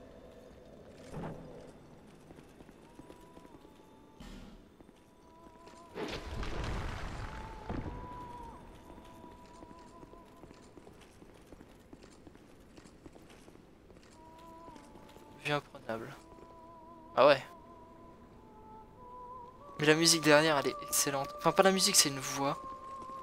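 Armoured footsteps thud and clink over rocky ground.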